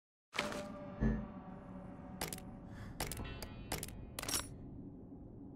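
Short menu clicks and beeps sound.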